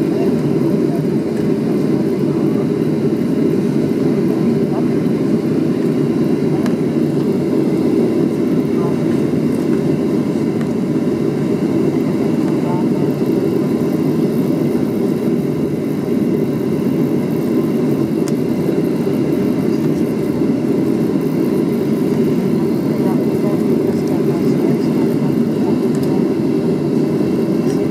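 A jet engine hums steadily, heard from inside an airliner cabin.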